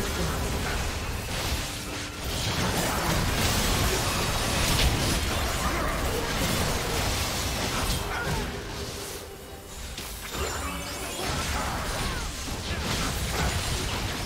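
Spell blasts and weapon hits from a video game team fight crackle and thud.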